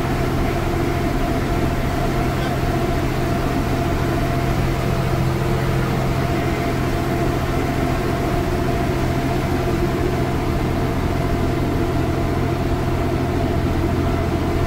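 A bus engine drones steadily as the bus drives along.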